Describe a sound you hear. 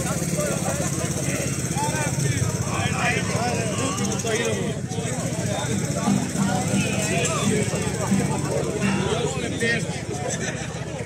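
A small folk band plays stringed instruments.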